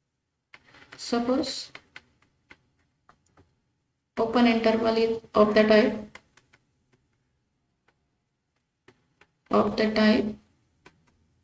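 A young woman speaks calmly and slowly through a close microphone, in short phrases with pauses.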